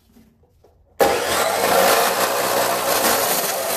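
An abrasive chop saw suddenly roars and grinds loudly through metal.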